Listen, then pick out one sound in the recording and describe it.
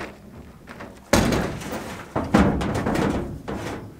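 A plastic barrel thuds hollowly onto a truck bed.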